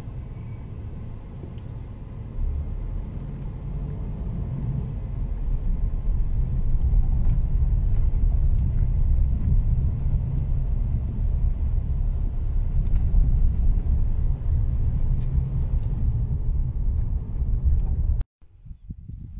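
A car drives along, heard from inside the car.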